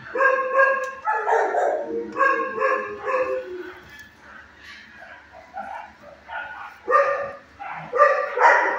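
A dog howls and whines in long, high cries close by.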